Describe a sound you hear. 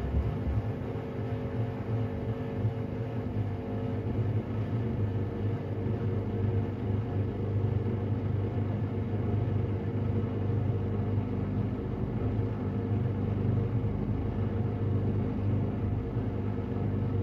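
A washing machine drum turns with a steady low hum.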